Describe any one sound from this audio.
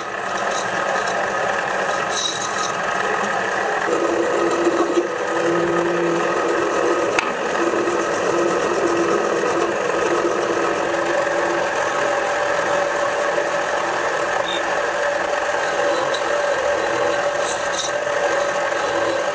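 A metal lathe hums and whirs steadily.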